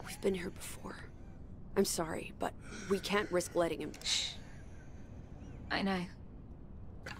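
A young woman speaks tensely and close by.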